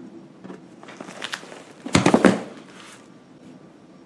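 A heavy book thumps shut.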